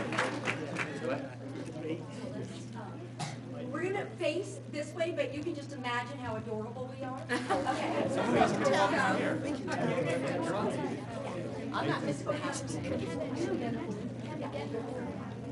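A crowd of adults and children chatters and talks at once.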